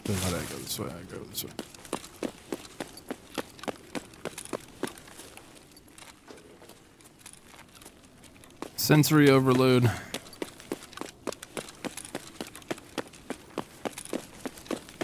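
Footsteps tread quickly and steadily on hard ground.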